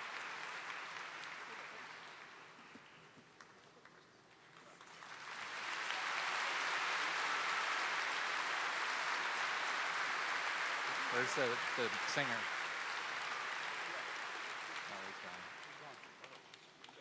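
An audience applauds loudly in a large hall, swelling and then fading.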